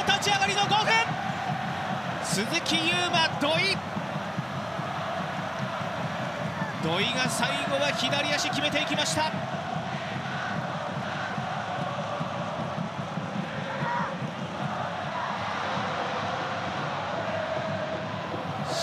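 A large stadium crowd cheers and chants steadily.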